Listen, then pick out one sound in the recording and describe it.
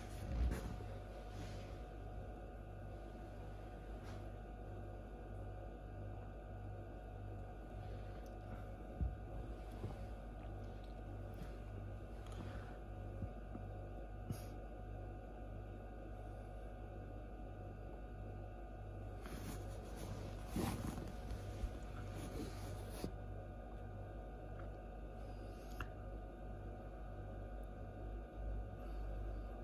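An incubator fan hums steadily with a soft, regular pulsing.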